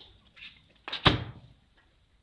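A wooden crate thumps with a single knock.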